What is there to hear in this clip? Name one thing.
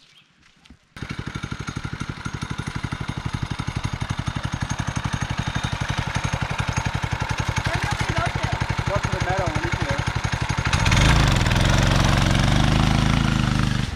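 A small engine idles with a steady, rapid putter.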